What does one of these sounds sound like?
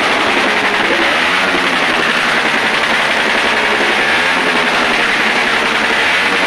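A motorcycle engine runs and revs nearby.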